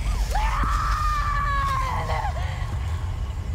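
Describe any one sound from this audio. A young woman screams a long, drawn-out cry.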